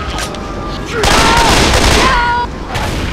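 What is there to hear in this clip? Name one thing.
A heavy machine gun fires a rapid burst.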